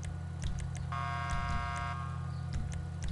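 A car horn honks once.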